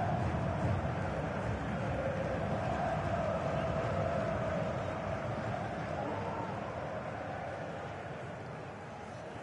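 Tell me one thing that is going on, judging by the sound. A large stadium crowd roars and chants steadily, slowly fading.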